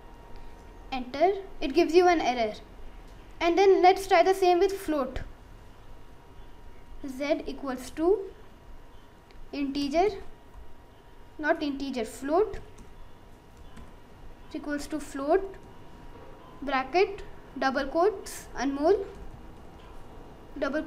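A boy speaks calmly close to the microphone, in short phrases with pauses.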